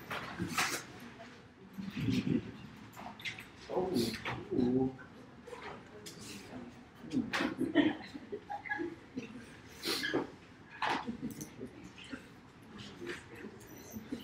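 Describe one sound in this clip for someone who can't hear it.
A man lectures in a room with some echo, heard through a microphone.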